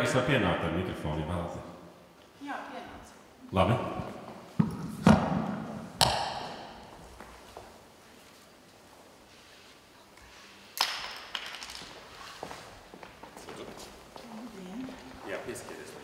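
A man speaks with animation into a microphone in an echoing hall.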